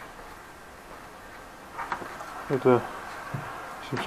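A door lock clicks and rattles.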